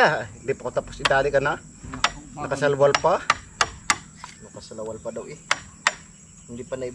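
A hammer taps on wood.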